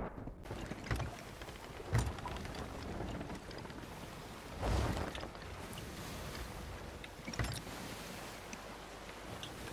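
Ocean waves wash against a wooden ship.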